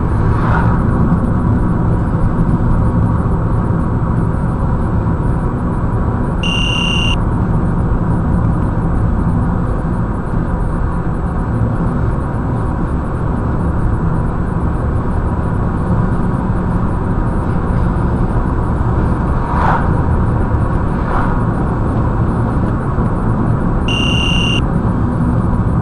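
Tyres roar on asphalt.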